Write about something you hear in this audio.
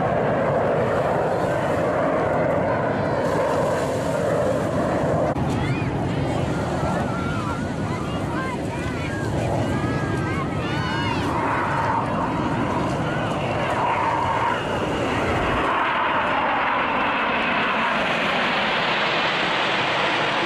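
Jet engines roar loudly overhead.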